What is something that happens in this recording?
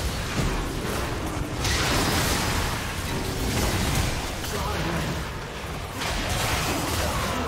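Magic blasts and impact effects crackle and whoosh in a fast video game battle.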